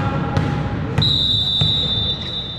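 A referee's whistle blows a long, steady shrill note.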